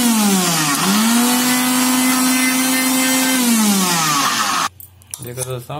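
A mixer grinder whirs loudly, its motor speeding up and slowing down.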